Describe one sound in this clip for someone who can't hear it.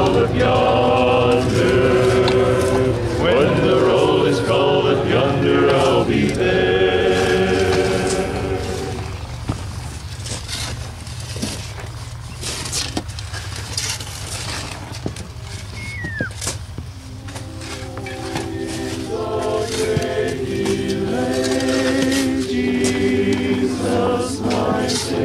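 Shovels scrape and dump loose dirt.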